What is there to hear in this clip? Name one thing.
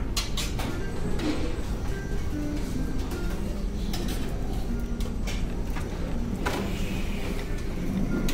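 Dishes rattle on a tray being carried.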